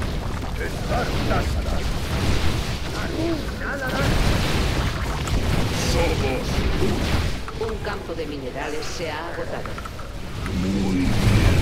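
Game battle sounds of explosions and blasts play throughout.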